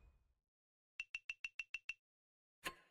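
Short electronic chimes tick rapidly as a score counts up.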